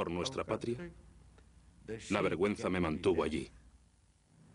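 An elderly man speaks calmly and earnestly, close by.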